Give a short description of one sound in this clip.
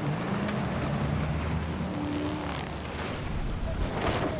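A personal watercraft engine drones across water.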